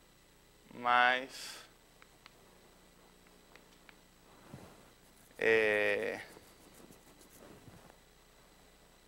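A man speaks loudly in short bursts with long pauses.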